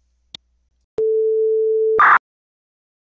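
A steady high test tone beeps.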